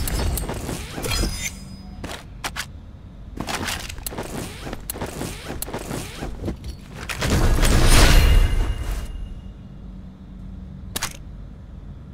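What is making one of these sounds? Items click as they are picked up.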